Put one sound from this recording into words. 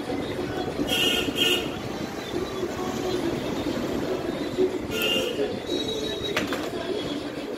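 A metal tool scrapes and clicks against engine parts.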